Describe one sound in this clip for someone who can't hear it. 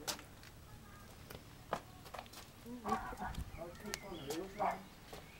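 A man's footsteps crunch on gravel.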